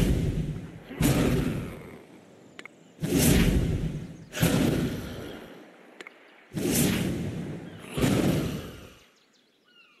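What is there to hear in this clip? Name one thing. Heavy booming blasts strike one after another, each with a rushing roar that fades.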